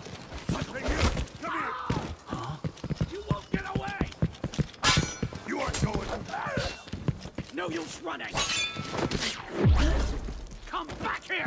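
A sword clangs and slashes in a fight.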